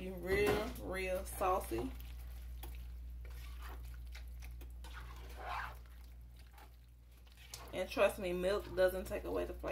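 A plastic spatula stirs and squelches through creamy pasta in a pan.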